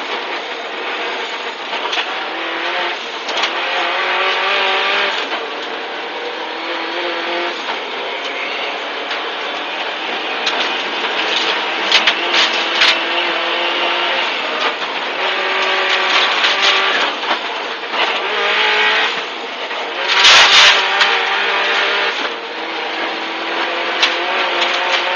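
A car engine roars and revs hard, close up inside the cabin.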